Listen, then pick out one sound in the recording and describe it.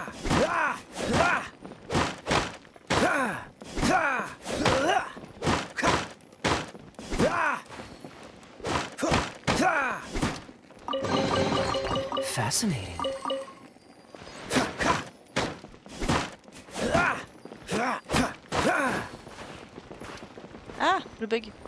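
A sword swishes through the air in quick strokes.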